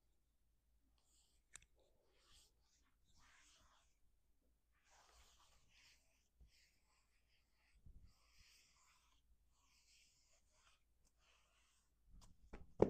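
Hands rub and rustle over a shirt.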